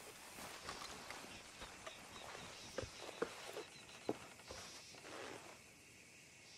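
Boots crunch in footsteps on a dirt path.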